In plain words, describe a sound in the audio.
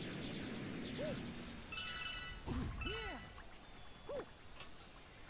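Springy game sound effects boing up and down.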